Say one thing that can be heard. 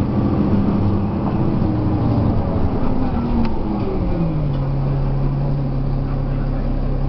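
A diesel articulated city bus drives, heard from inside, its engine note sinking and then holding steady.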